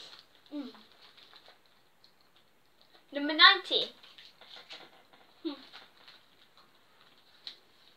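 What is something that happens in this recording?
Wrappers crinkle as a girl opens a small packet.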